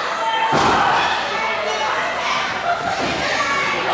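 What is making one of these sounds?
Bodies thud onto a wrestling ring mat.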